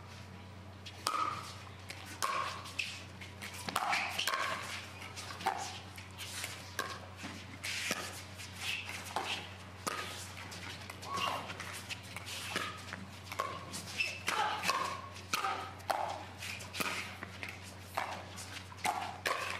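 Paddles hit a plastic ball back and forth with sharp pops.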